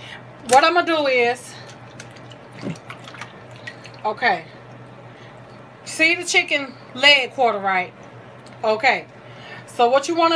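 Raw chicken pieces squelch and slap wetly in a metal sink.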